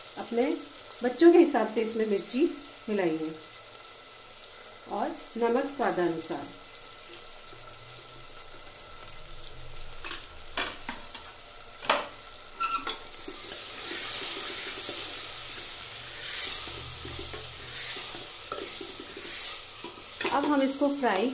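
Vegetables rustle and clink against a metal pot as a hand mixes them.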